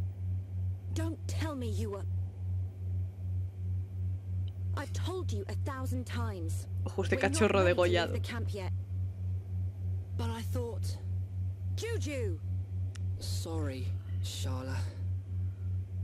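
A young woman talks and laughs close to a microphone.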